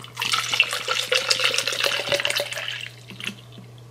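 Water pours from a bottle into a plastic cup.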